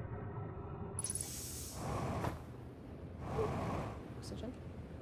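A jetpack thruster blasts in short loud whooshes.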